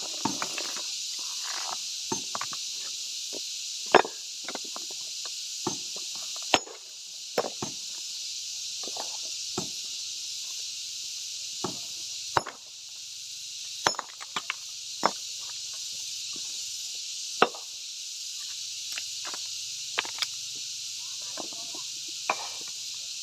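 Stone slabs clatter and scrape as they are moved by hand.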